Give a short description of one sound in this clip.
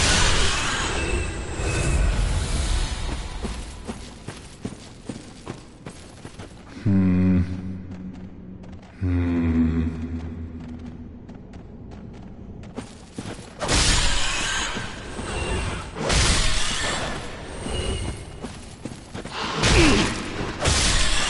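Armoured footsteps clank quickly over stone.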